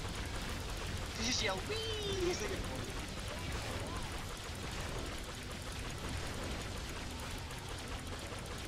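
Magic bolts zap and crackle during a game battle.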